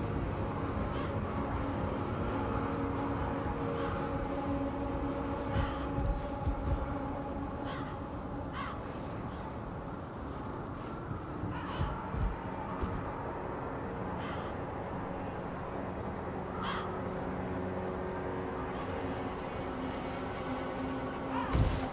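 Footsteps knock on wooden ladder rungs as a figure climbs.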